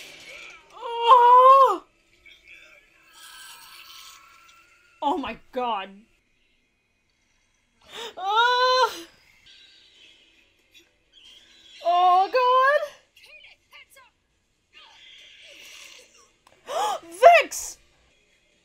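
A young woman cries out in dismay, close to a microphone.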